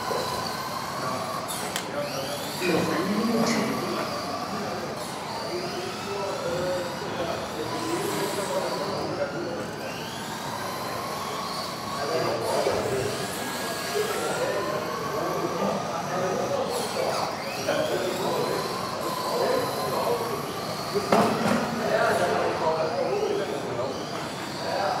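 Electric radio-controlled model cars whine as they speed up and slow down around a track in a large hall.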